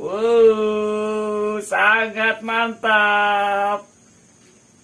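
A man calls out in long, drawn-out, cheerful tones close by.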